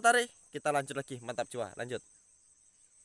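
A man speaks close up, calmly and briefly.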